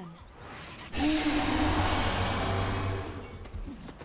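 A man speaks into a headset microphone.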